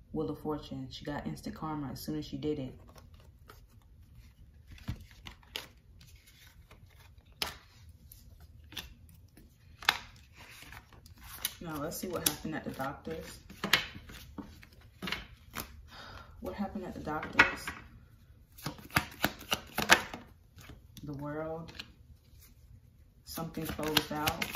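Playing cards riffle and slap softly onto a table.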